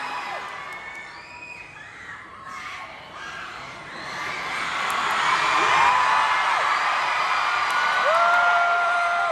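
A young woman speaks through a microphone over loudspeakers in a large echoing hall.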